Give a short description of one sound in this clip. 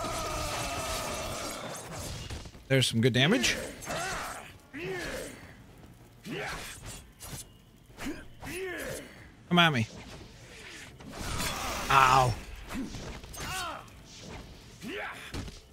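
Blades slash with sharp swishes in a fight.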